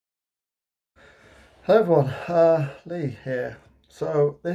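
A man talks with animation, close to the microphone.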